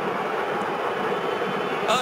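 A young man argues with a referee.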